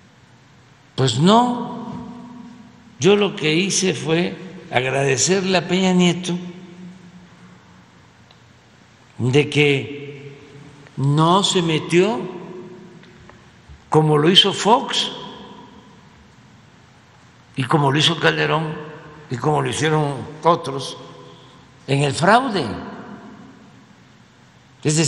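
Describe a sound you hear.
An elderly man speaks slowly and deliberately into a microphone, with pauses between phrases, in a large echoing hall.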